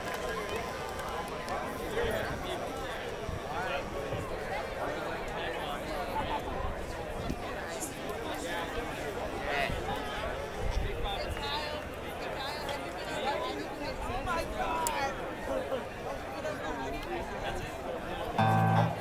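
A rock band plays loudly through speakers.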